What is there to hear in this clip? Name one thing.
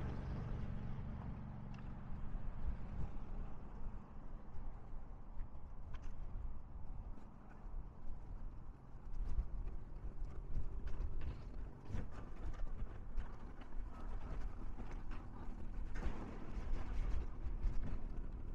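Small waves splash and lap against rocks close by.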